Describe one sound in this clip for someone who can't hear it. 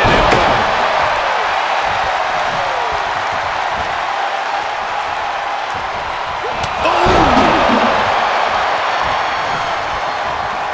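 A large crowd cheers loudly throughout.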